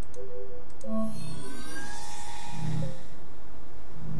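A machine whirs briefly with rising chirps.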